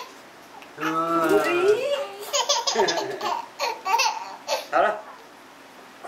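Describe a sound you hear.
A baby giggles close by.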